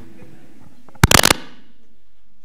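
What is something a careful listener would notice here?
A microphone thumps loudly as it is handled.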